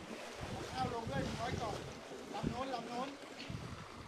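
Water splashes as a man wades quickly through floodwater.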